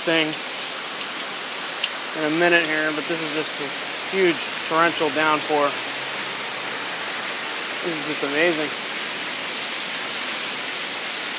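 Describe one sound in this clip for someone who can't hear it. Heavy rain pours and splashes on wet pavement outdoors.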